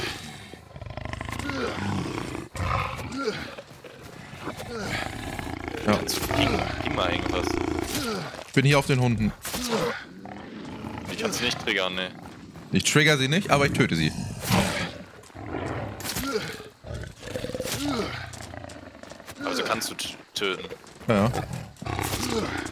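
A beast growls and snarls.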